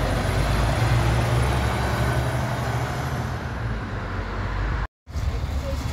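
A bus pulls away with its engine growling.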